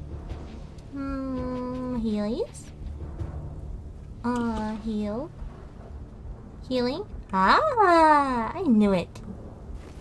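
A young woman talks expressively into a microphone, her voice rising and falling in drawn-out phrases.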